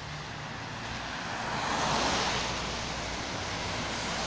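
A heavy truck rumbles past on a wet road, close by.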